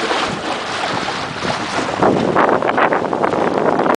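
A sail flaps and rustles in the wind.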